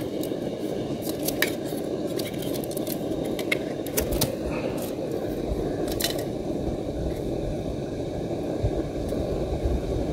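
A spoon clinks against a metal cup.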